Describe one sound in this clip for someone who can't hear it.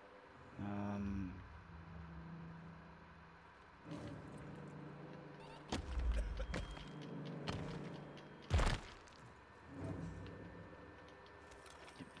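Hands rummage and rustle through a heap of debris.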